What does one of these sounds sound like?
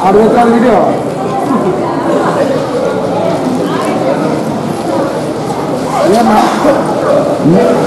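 A crowd of people chatters in an echoing hall.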